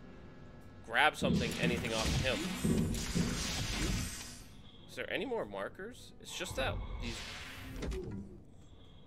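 Game sound effects whoosh and rumble.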